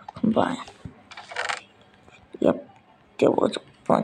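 A wooden chest creaks open in a game.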